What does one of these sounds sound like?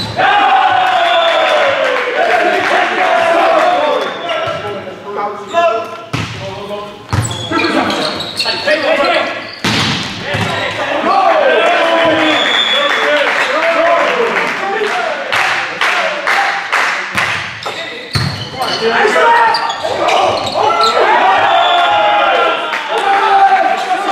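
Players shout and cheer loudly in a large echoing hall.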